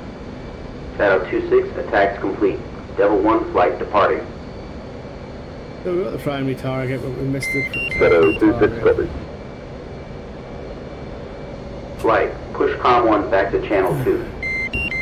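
A young man speaks with animation into a microphone close by.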